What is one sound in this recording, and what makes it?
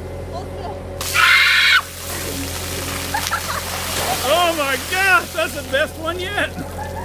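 A large splash of water pours down onto pavement.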